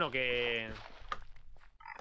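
A block of earth breaks with a short crunch.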